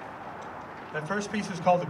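A man speaks through a loudspeaker outdoors.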